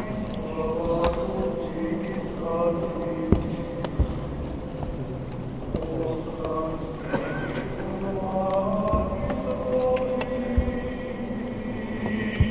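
An elderly man chants a prayer in a slow, steady voice that echoes through a large hall.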